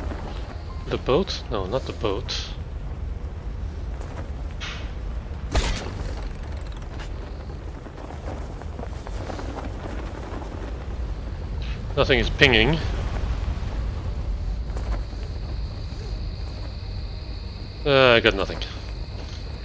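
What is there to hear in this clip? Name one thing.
A young man talks briefly into a close microphone, in short bursts.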